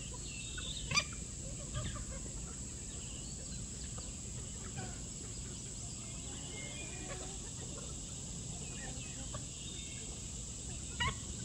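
Chickens cluck softly and chirp while pecking nearby.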